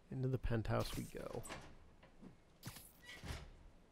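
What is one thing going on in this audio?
A metal hatch creaks open.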